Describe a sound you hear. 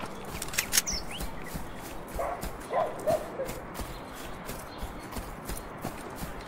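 Footsteps tread steadily over grass.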